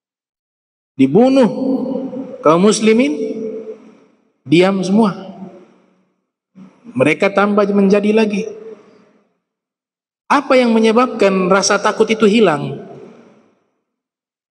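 A man speaks calmly into a microphone in short phrases, in a reverberant room.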